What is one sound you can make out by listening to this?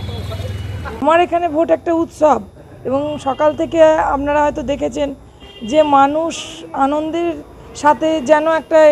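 A middle-aged woman speaks calmly and clearly into microphones close by.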